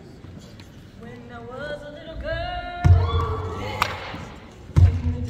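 Women sing together into a microphone, heard through loudspeakers in a large hall.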